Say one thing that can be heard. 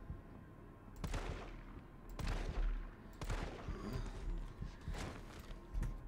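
Gunshots ring out loudly with a short echo, several times.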